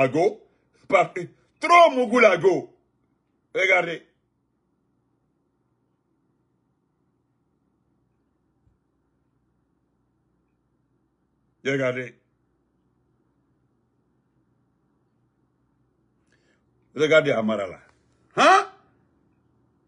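A man speaks in short bursts with long pauses, close to the microphone.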